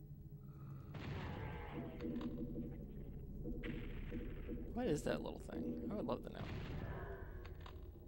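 Gunshots boom from a video game.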